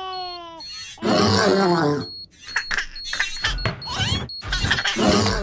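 A man speaks with animation in a deep voice.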